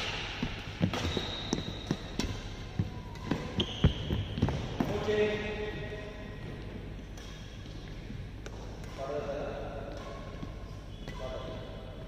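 Sneakers squeak and thud on the court floor.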